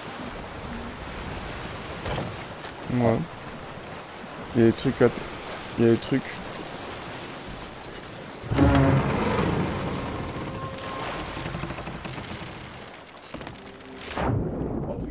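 Stormy waves wash and roar.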